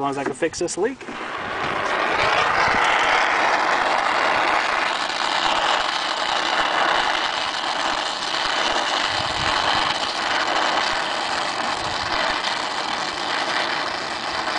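A brazing torch roars steadily with a loud hiss.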